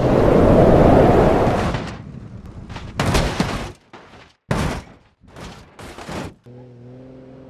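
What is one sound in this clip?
A car crashes with loud metallic bangs.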